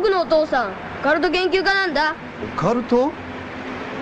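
A young boy speaks earnestly.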